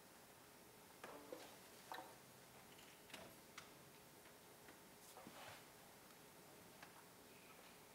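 Musicians shift and knock their instruments softly in a quiet hall.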